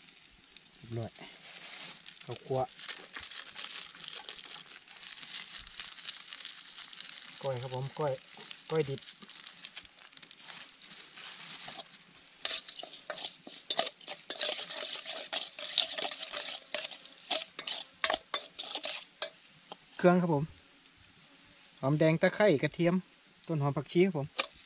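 A shallow stream trickles over rocks nearby.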